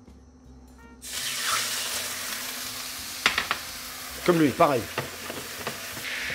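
Liquid sizzles loudly in a hot pan.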